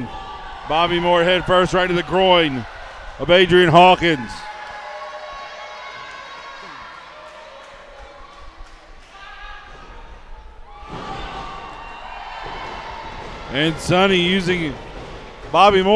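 A man shouts loudly in a large echoing hall.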